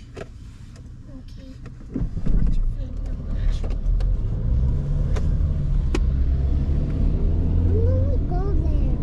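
Raindrops tap on a car windscreen.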